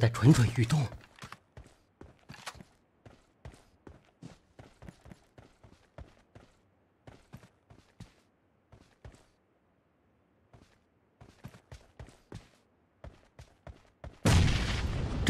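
Footsteps tread quickly and evenly over rough ground.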